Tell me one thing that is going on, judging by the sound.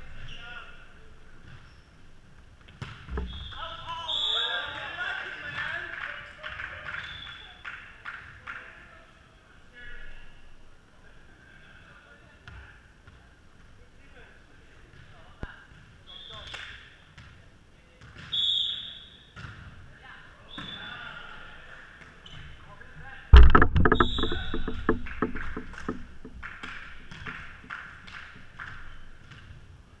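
Men shout and call out to each other across the court.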